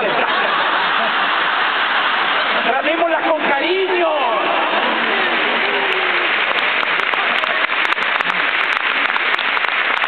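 A large crowd cheers and screams loudly throughout.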